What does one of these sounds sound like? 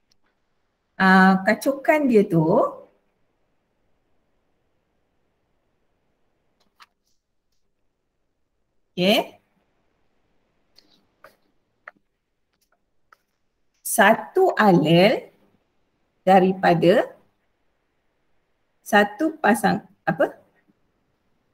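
A woman speaks calmly through an online call, in short phrases with pauses.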